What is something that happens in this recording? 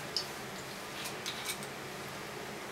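A bottle cap twists open with a faint click.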